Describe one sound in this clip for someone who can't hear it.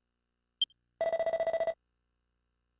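A quick run of electronic blips chatters as game text prints out.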